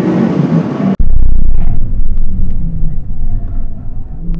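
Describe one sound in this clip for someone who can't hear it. Wind buffets loudly past the side of a speeding car.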